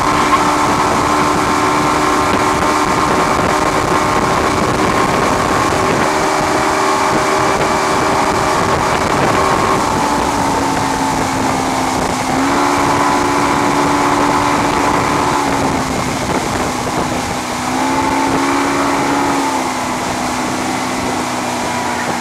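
A boat engine drones loudly, its pitch rising and falling.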